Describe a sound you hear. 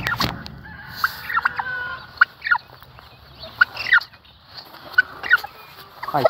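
Chickens cluck and chirp in the background.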